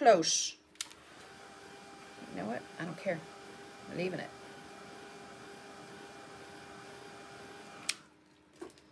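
A heat gun whirs steadily, then switches off.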